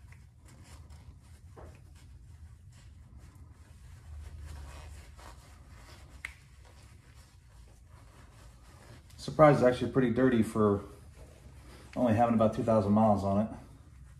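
A cloth rubs and wipes against metal.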